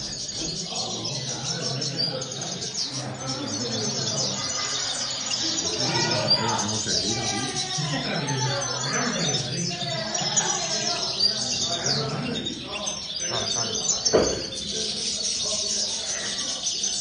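Small caged songbirds chirp and trill rapidly.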